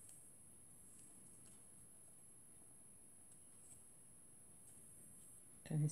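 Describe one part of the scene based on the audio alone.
Fingers handle thin paper die-cut pieces and press them onto card.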